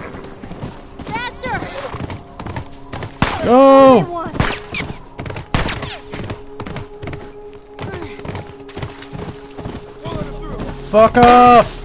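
A horse's hooves thud on snow.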